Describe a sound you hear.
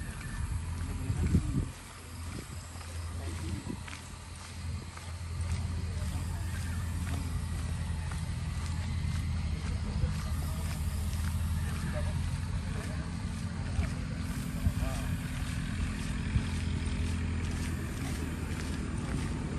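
Footsteps scuff along a paved path outdoors.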